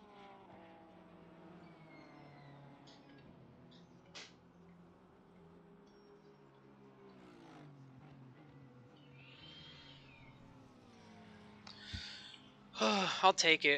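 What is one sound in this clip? A racing car engine drones and shifts pitch.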